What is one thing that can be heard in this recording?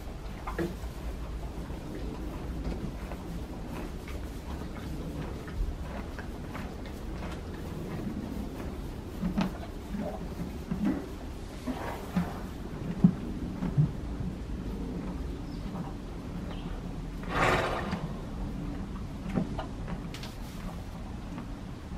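A horse drinks from a metal bucket, slurping and gulping water.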